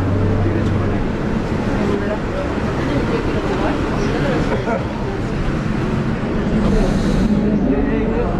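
A metro train rumbles and rattles along its tracks.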